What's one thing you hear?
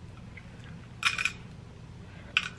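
A woman bites into food with a crunch.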